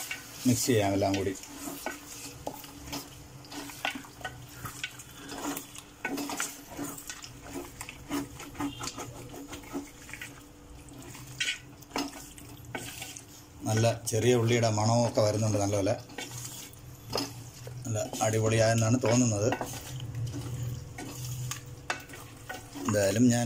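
A spoon scrapes and knocks against a metal pot while stirring.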